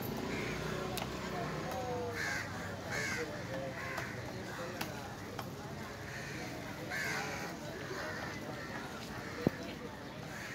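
A knife knocks sharply against a wooden block.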